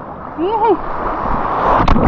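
A wave breaks nearby with a rushing roar.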